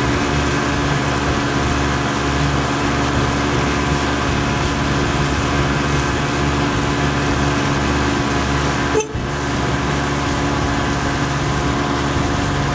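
A boat engine hums steadily as the boat moves over calm water.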